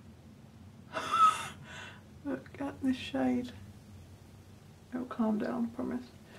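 A young woman speaks close by in a calm voice.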